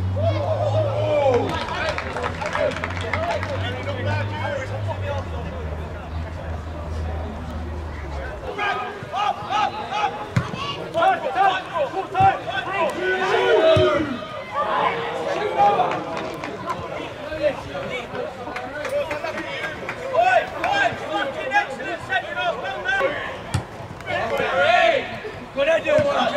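Men shout to each other outdoors across an open pitch.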